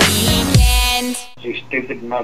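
Pop music plays loudly.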